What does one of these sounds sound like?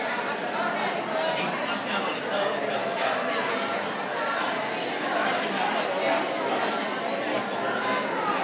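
A crowd of men and women chatter and talk over one another in a large room.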